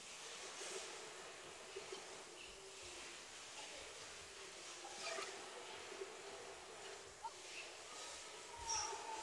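Shuttlecock hits from badminton rackets pop sharply in a large echoing hall.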